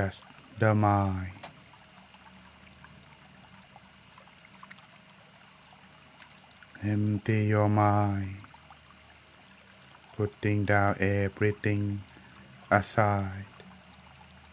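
A man chants slowly in a low, drawn-out voice into a microphone.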